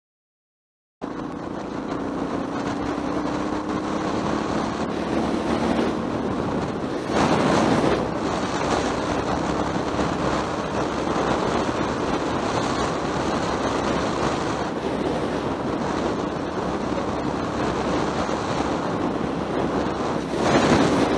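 Wind rushes loudly past, with gusts.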